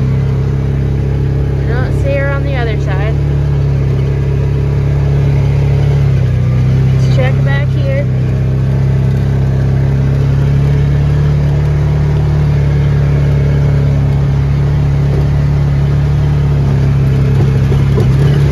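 Tyres roll over grass and rough ground.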